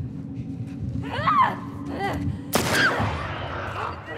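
A creature shrieks and screeches nearby.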